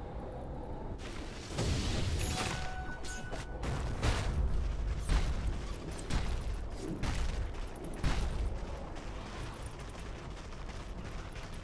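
Game combat effects crash and whoosh in short bursts.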